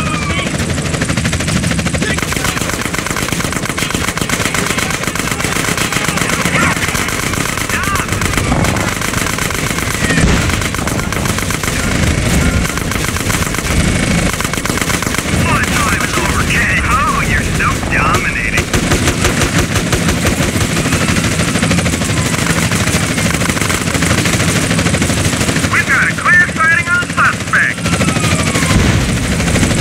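A heavy machine gun fires in rapid, rattling bursts.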